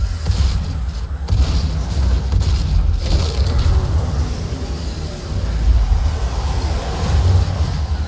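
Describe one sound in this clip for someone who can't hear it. A shotgun fires loud, booming blasts.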